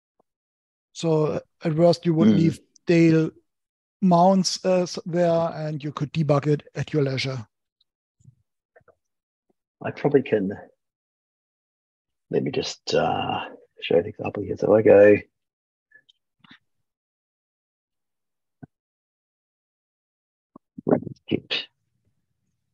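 A man talks calmly through an online call, in short bursts with pauses.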